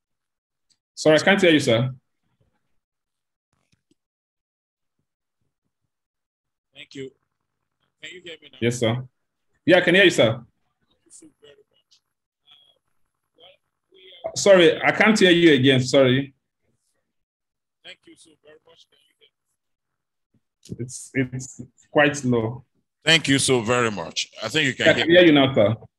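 A young man speaks calmly in short bursts, heard through an online call.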